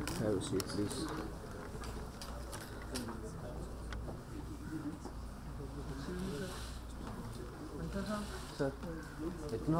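A man speaks calmly into a microphone, heard through loudspeakers in an echoing hall.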